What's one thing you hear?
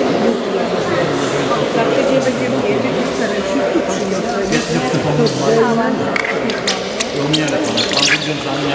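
Water splashes and laps in a large echoing indoor pool.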